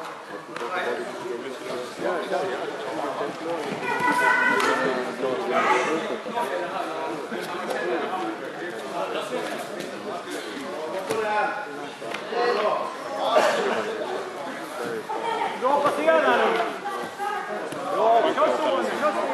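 Several men and women shout and call out in a large echoing hall.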